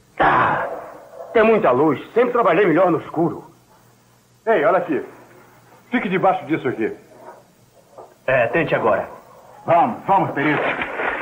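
Several men talk in turn outdoors, with urgency.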